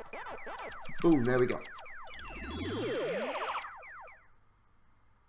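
A cheerful video game jingle plays with quick rising tones.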